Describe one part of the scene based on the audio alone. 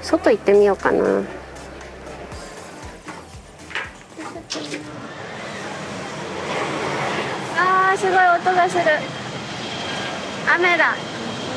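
A young woman speaks animatedly, close by.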